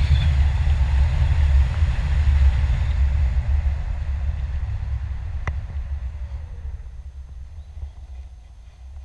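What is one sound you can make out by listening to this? Wind rushes loudly past, slowly easing.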